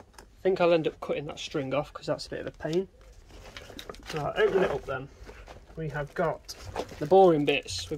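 Fabric rustles as a bag is handled.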